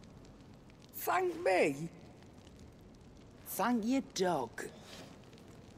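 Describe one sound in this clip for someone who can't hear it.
A middle-aged woman speaks warmly and close.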